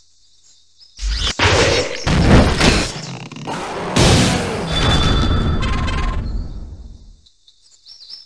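Giant beetles clash with loud whooshing impacts.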